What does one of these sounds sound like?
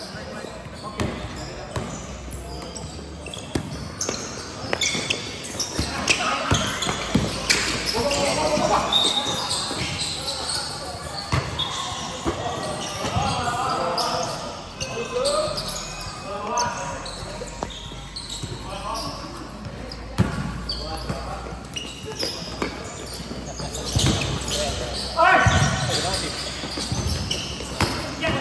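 A basketball bounces on a hard court with echoing thuds.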